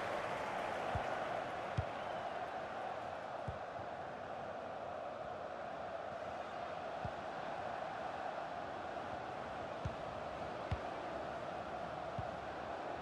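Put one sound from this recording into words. A football is kicked with dull thumps.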